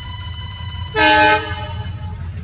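A train horn blares briefly.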